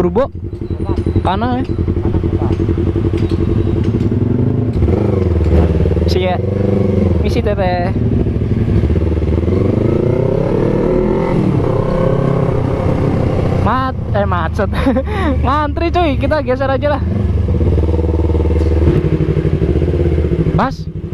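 A motorcycle engine rumbles steadily close by and revs as it pulls away.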